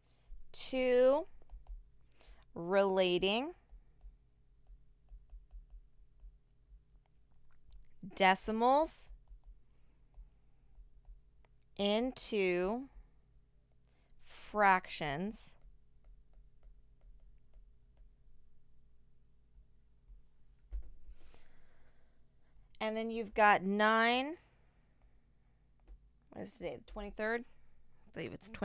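A woman speaks calmly into a microphone, in short phrases with pauses.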